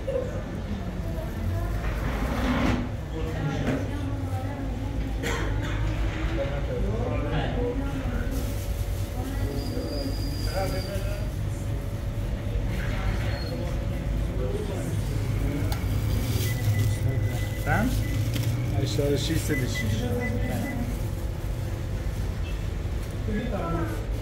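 Men talk casually close by.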